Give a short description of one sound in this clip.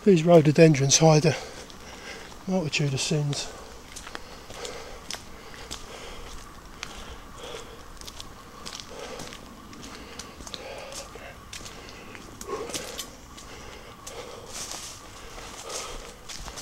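Footsteps crunch on a gravel and leaf-strewn path.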